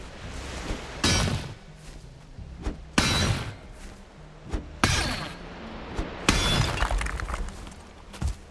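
A pickaxe strikes rock in heavy, crunching blows every couple of seconds.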